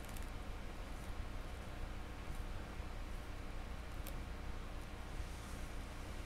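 Hands handle a light plastic object with faint taps.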